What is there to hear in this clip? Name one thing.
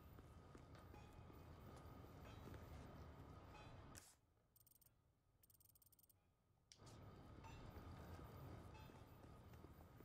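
A young man talks casually into a microphone.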